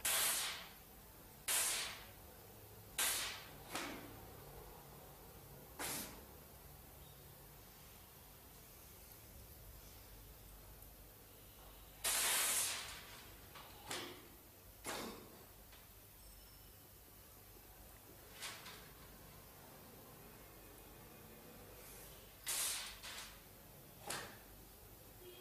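An elderly man close by blows short, sharp hissing bursts of breath, again and again.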